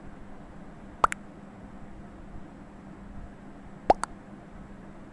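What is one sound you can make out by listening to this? A short electronic pop sounds as a chat message arrives.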